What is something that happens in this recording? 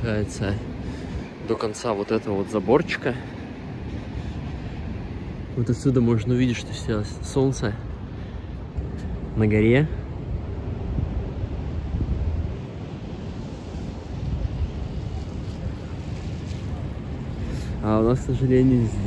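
Wind blows steadily outdoors with a low rumble.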